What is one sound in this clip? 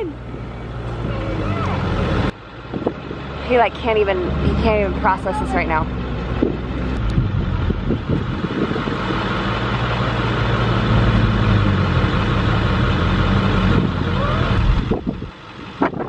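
A loader engine rumbles.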